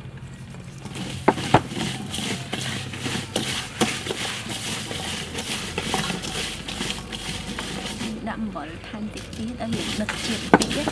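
Gloved hands toss and squelch chopped vegetables in a metal bowl.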